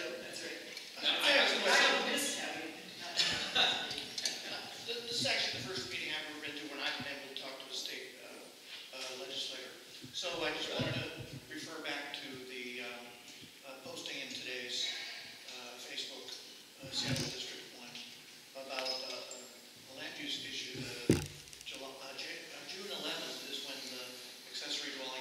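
An elderly man speaks calmly at close range.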